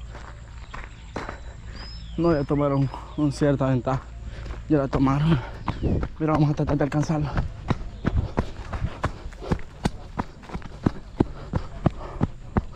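Footsteps crunch on a dirt and gravel path.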